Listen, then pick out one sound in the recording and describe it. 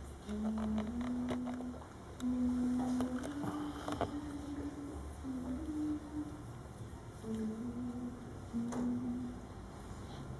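A woman sings long, steady notes in an echoing hall.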